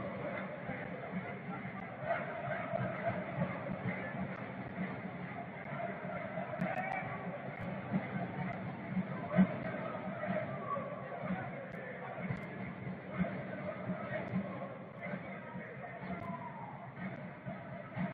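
A stadium crowd murmurs and chants steadily all around.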